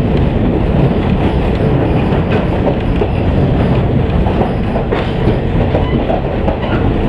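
A diesel railcar rumbles along the track, heard from inside.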